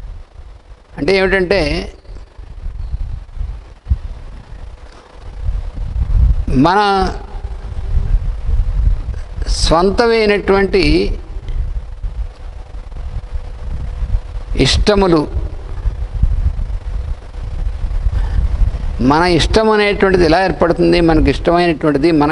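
An elderly man speaks slowly and calmly into a close microphone, in short phrases with long pauses.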